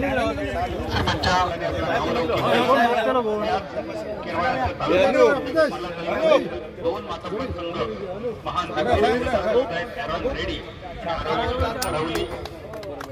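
Several men talk at once in a group outdoors.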